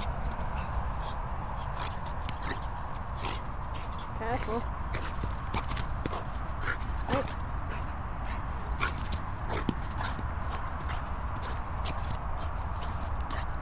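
A dog pants and snuffles close by.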